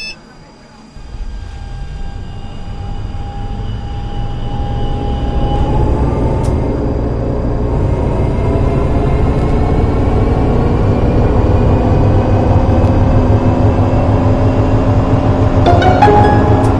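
A tram's electric motor hums and whines, rising in pitch as it speeds up.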